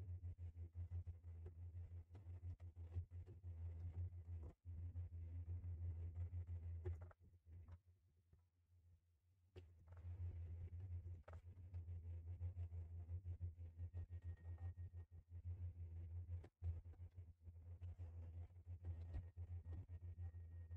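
Footsteps thud on a hard floor.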